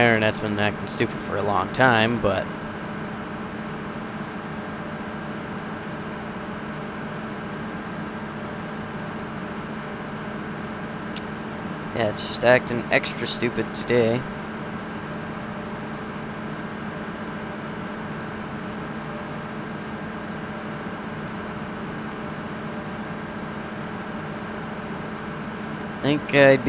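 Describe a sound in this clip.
A combine harvester engine hums steadily.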